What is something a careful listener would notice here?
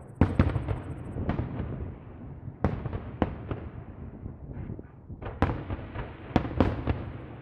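Fireworks crackle and sizzle.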